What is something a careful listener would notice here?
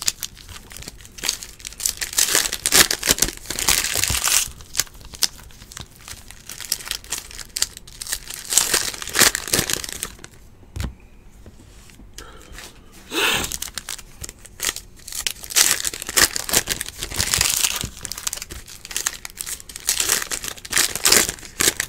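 Foil wrappers crinkle and rustle in someone's hands.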